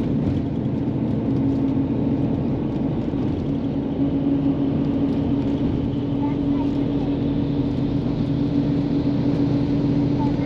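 A vehicle hums steadily as it travels at speed, heard from inside.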